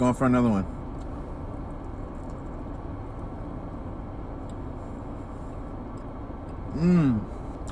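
A young man chews food.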